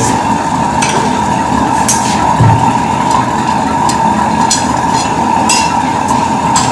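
A hammer strikes metal in sharp, ringing blows at an uneven pace.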